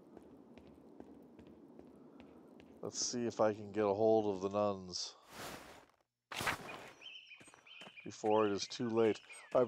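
Soft footsteps patter on a stone floor.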